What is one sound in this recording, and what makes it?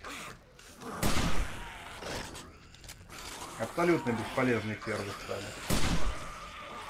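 A gun fires a few loud, sharp shots.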